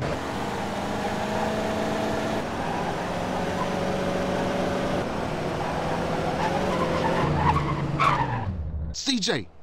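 A car engine hums as a car drives along a street.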